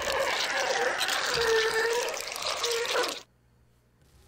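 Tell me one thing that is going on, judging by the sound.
A monstrous creature growls loudly.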